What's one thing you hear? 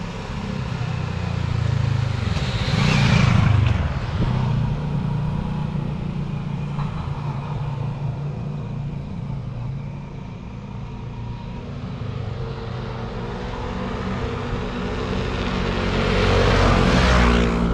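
Wind rumbles steadily past.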